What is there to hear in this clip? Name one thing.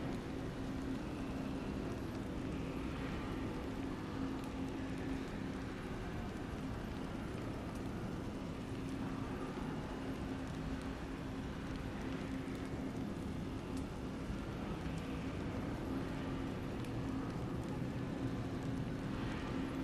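A large machine hums and whirs steadily as it spins.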